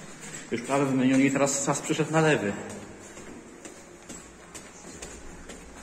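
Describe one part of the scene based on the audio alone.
Footsteps climb stairs in an echoing stairwell.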